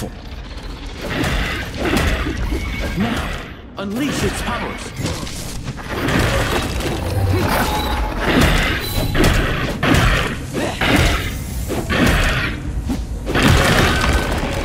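Fiery blasts burst and crackle in a fight.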